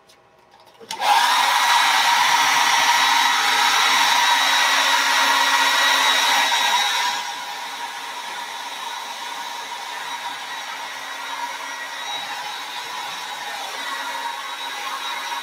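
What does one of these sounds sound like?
A hair dryer blows with a steady loud whoosh.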